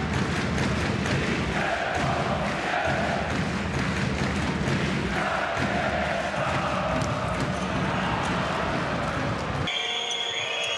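A large crowd cheers and chants loudly in an echoing arena.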